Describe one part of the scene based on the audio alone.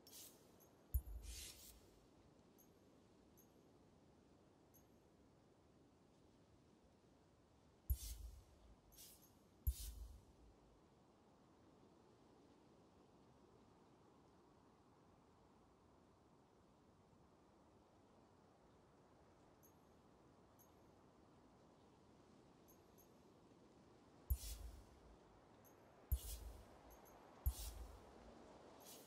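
Game menu clicks and whooshes sound as options are selected.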